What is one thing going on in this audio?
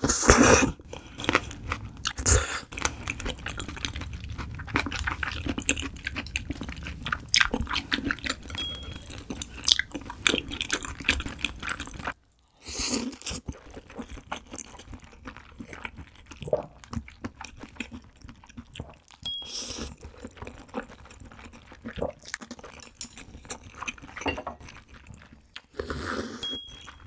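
A young woman slurps noodles loudly, close to a microphone.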